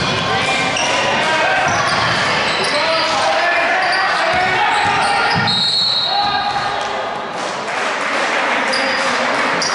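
Spectators chatter and shout in the stands.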